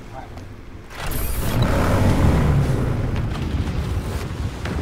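A motorcycle engine roars loudly as the bike speeds off.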